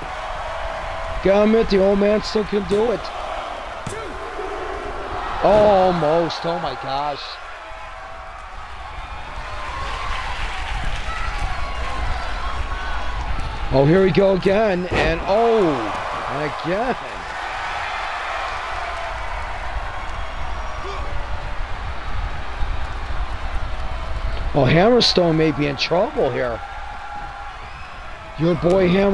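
A large crowd cheers and murmurs in a big echoing hall.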